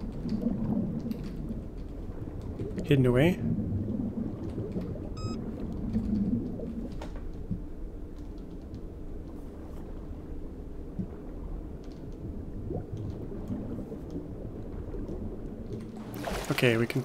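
Water gurgles and swirls in a low, muffled rumble underwater.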